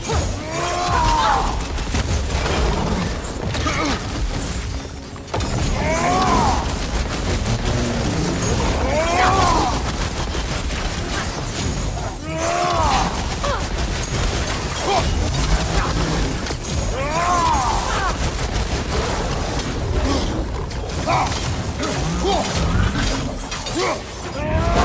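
Flames roar and crackle in bursts.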